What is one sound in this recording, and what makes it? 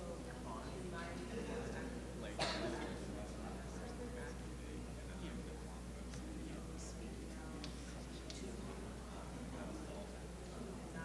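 A young woman speaks calmly through a microphone in a large echoing hall.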